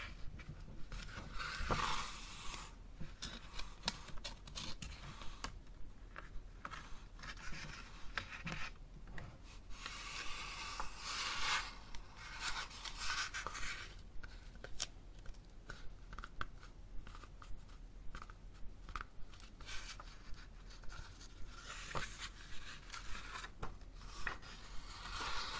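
Paper pages rustle and turn close by.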